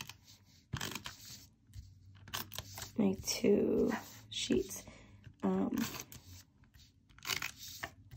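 Paper rustles and slides across a table.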